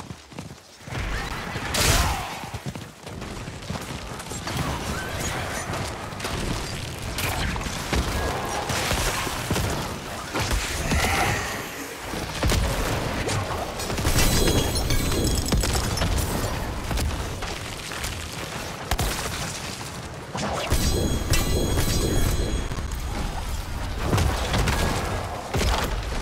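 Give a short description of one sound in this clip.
Spells and weapons clash in a fantasy battle with booming impacts.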